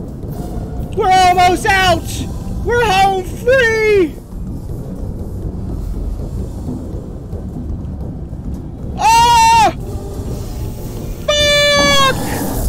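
A man shouts and yells loudly and excitedly into a close microphone.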